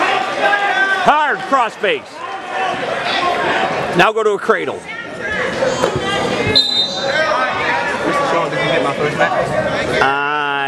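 A crowd of young spectators shouts and cheers loudly in a large echoing hall.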